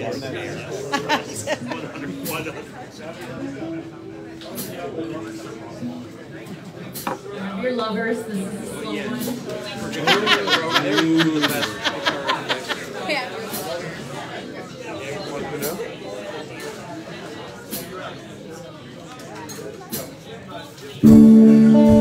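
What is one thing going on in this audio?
Drums and cymbals beat steadily.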